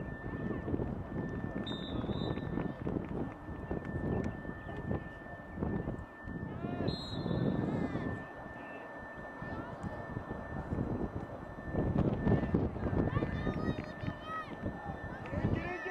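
Young women shout and call out to each other on an open field.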